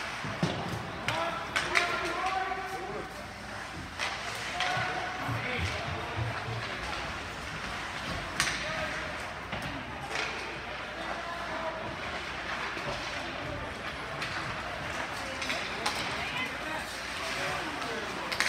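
Spectators talk and call out nearby.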